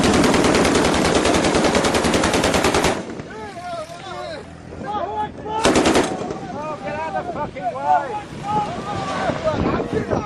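A pickup truck engine runs as it drives over dirt.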